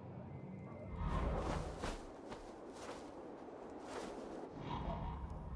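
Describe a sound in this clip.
A large bird flaps its wings with loud whooshes.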